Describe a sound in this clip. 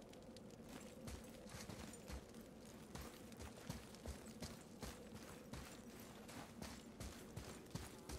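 Heavy footsteps crunch through snow at a steady walking pace.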